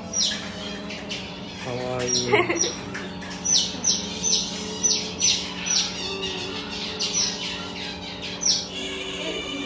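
A small otter chirps and squeaks in short, high, repeated calls.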